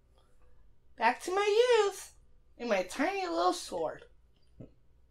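A small fairy chirps in high, quick bursts.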